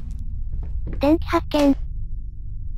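A man exclaims briefly close to a microphone.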